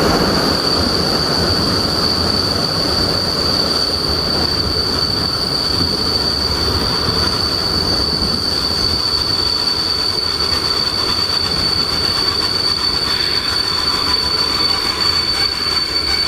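Wind rushes loudly past an open train window.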